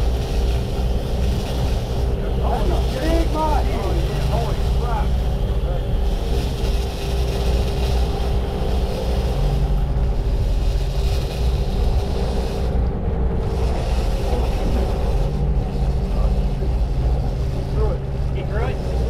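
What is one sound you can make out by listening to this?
Water rushes and churns in the boat's wake.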